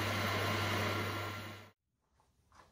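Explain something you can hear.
A machine motor hums loudly, then cuts off.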